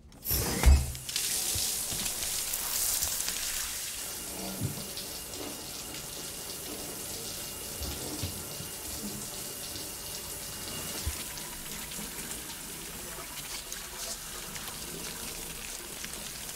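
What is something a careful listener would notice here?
Shower water sprays and splashes steadily.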